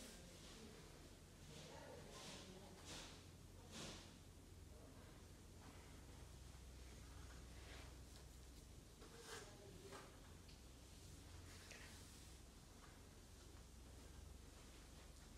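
A ceiling fan whirs steadily with a low hum and whooshing air.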